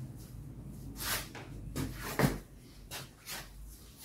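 Wood knocks and scrapes as a man handles a door frame up close.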